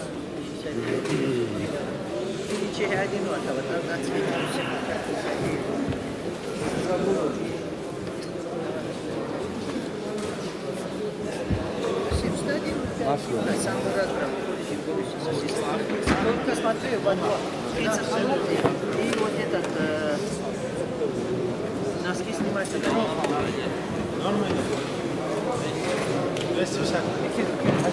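Several young men talk at once in an echoing hall.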